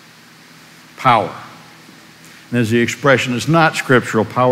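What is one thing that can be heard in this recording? A man speaks with animation in an echoing hall.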